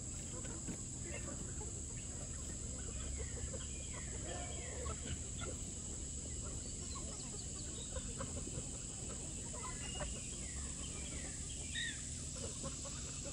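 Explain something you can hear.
A flock of chickens clucks and squawks outdoors.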